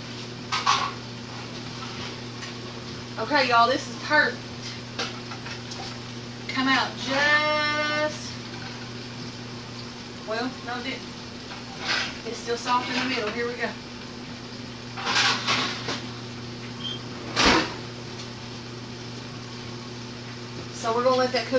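A refrigerator hums steadily nearby.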